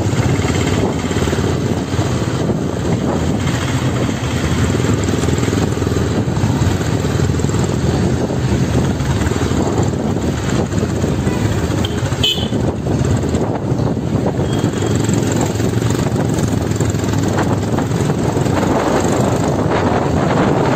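A motorcycle engine thumps steadily close by.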